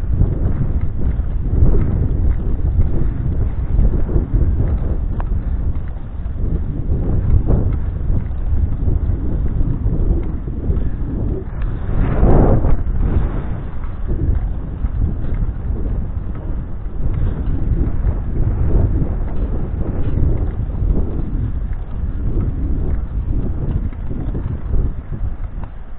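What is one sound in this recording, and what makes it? Wind buffets and rumbles loudly against a moving bicycle.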